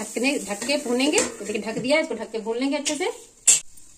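A metal lid clanks onto a pan.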